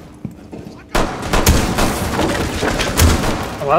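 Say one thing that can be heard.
A wall bursts apart with loud blasts and cracking wood.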